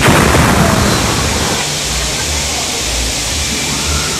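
A fire crackles and roars loudly.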